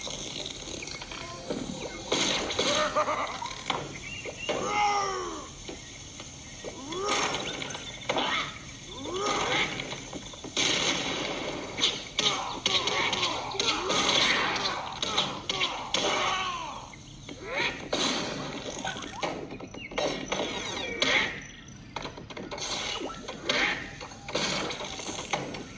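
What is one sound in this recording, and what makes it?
Cartoonish battle sound effects pop and clash from a tablet game.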